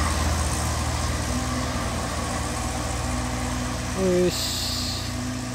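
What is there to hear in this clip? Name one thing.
A truck engine rumbles steadily as it climbs slowly uphill.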